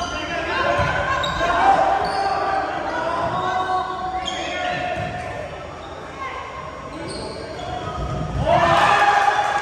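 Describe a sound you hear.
A volleyball thumps off hands and arms.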